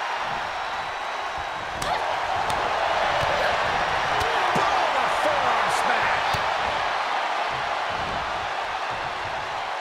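Bodies thud heavily onto a wrestling ring's mat.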